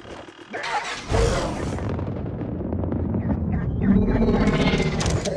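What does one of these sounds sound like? A spaceship explodes with a deep, roaring blast.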